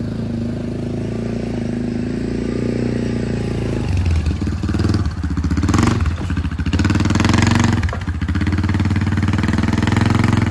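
An all-terrain vehicle engine rumbles and revs up close.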